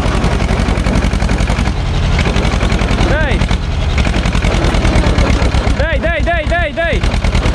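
A small tractor engine chugs steadily close by.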